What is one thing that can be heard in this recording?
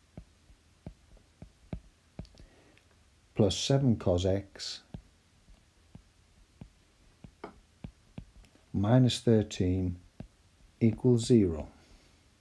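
A stylus taps lightly on a tablet.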